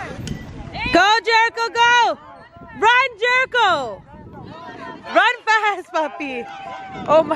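A woman cheers and shouts loudly with excitement.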